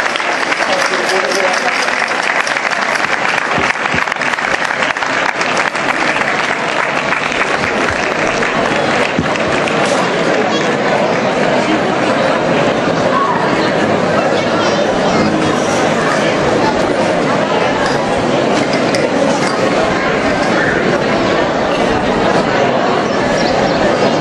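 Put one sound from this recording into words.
A crowd of onlookers murmurs outdoors.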